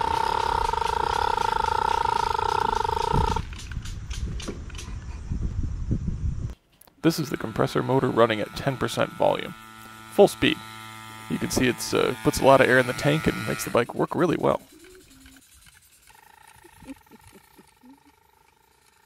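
A small bicycle engine buzzes loudly, revs up and down, then fades into the distance.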